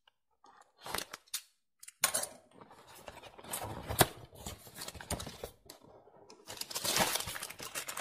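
A cardboard box is opened, its flaps scraping and tearing.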